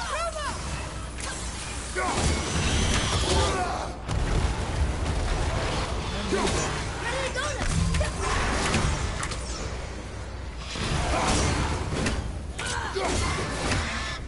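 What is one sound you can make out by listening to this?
An axe whooshes and strikes with heavy thuds.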